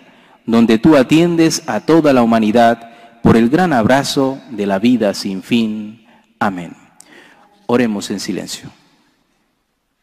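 A man speaks calmly into a microphone, heard through a loudspeaker in an echoing hall.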